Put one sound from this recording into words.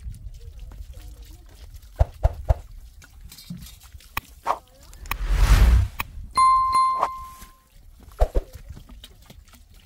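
Water pours from a can and splashes onto gravel and rock.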